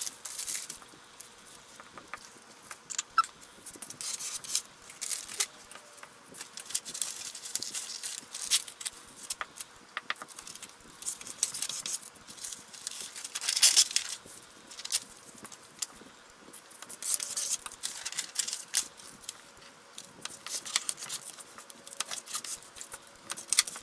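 Paper rustles and crinkles as it is handled and pressed flat.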